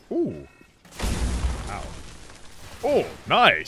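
Gunfire bursts from a heavy weapon.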